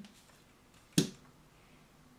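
A plastic model knocks down onto a table.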